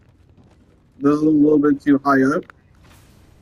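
A young man speaks into a microphone with animation.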